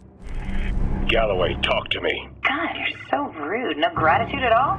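A man speaks intently through a radio link.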